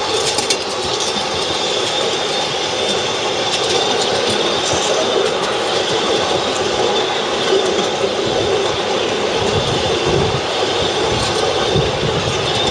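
A small train hums and clatters along a narrow track, coming closer.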